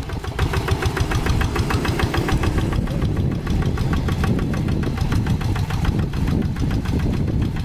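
A small tractor engine chugs loudly and rapidly close by.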